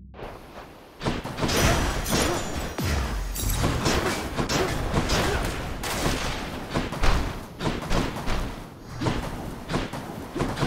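Magic blasts and sword hits crackle and thud in a fast fight.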